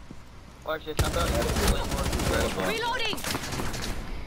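Rifle shots fire in rapid bursts close by.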